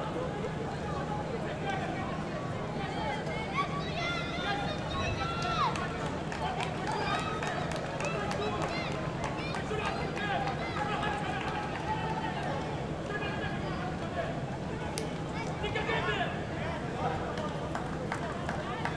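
A stadium crowd murmurs and chatters steadily all around.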